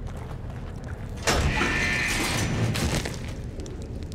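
A heavy metal lever clanks as it is pulled.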